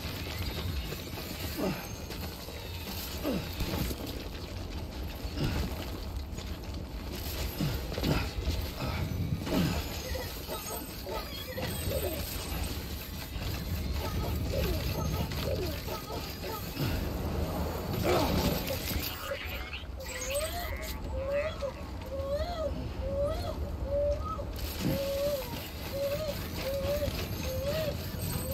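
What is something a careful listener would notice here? Cargo rattles and clanks with each step.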